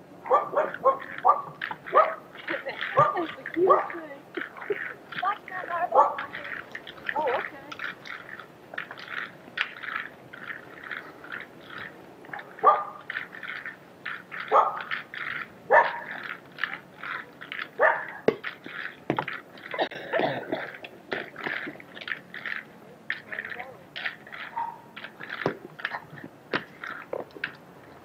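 Roller skate wheels roll and scrape on pavement.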